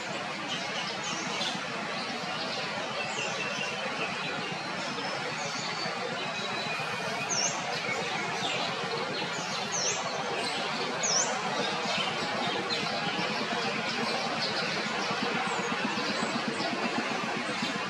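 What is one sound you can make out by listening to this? Leaves rustle as a monkey climbs through tree branches.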